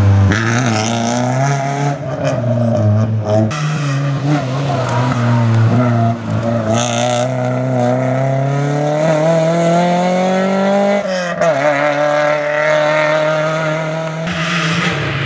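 A rally car engine roars and revs hard, rising in pitch as the car accelerates away.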